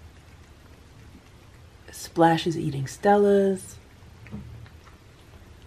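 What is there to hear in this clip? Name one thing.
A cat chews and laps at food close by.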